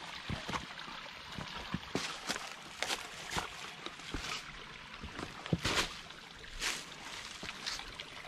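Footsteps crunch and scuff on rocky ground.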